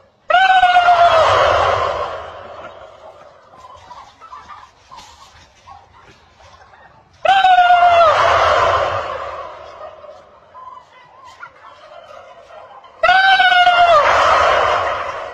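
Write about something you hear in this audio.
A large flock of turkeys gobbles loudly all at once, in sudden bursts.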